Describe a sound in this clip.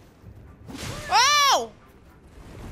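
A young woman gasps loudly in surprise.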